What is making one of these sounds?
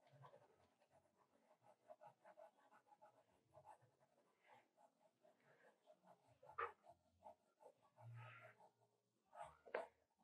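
A pencil scratches quickly across paper in short strokes.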